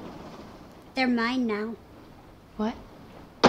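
A young woman speaks softly and sleepily, close by.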